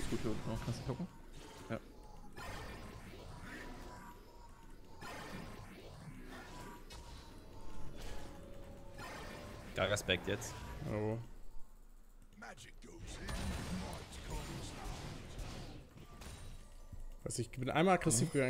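Game sound effects of magic blasts and hits play.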